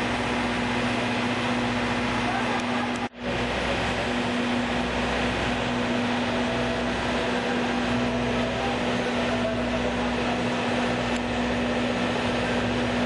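A train engine hums steadily close by.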